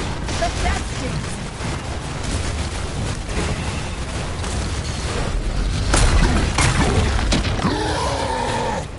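Laser blasts crackle and roar in a battle.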